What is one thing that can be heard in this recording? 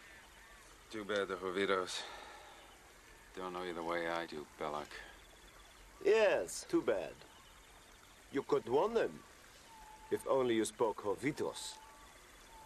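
A second man answers in a calm, low voice close by.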